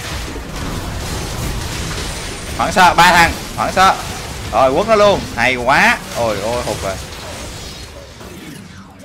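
Fighting sound effects clash and burst in a game.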